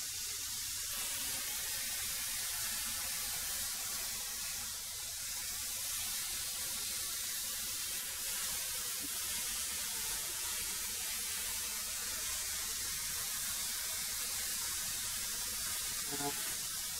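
A wood planer runs with a steady whine.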